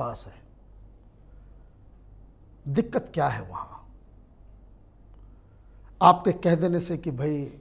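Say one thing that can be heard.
A man speaks clearly into a microphone, pausing between phrases.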